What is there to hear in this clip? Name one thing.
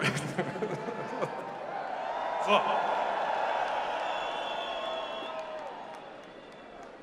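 A large crowd sings together in a huge open stadium.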